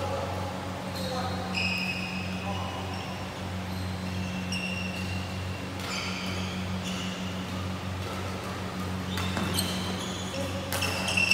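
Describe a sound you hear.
Sports shoes squeak sharply on a hard court floor in a large echoing hall.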